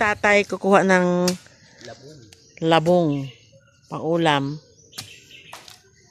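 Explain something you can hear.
Dry bamboo leaves rustle and crackle as someone handles them on the ground.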